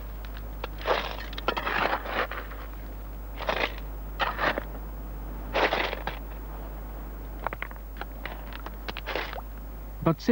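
A metal scoop scrapes and rattles through wet gravel.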